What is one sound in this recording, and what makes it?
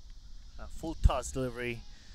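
A cricket bat sharply strikes a ball outdoors.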